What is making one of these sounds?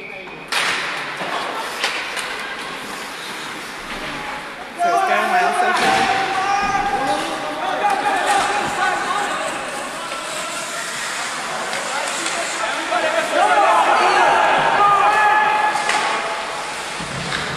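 Skates scrape and hiss on ice in a large echoing rink.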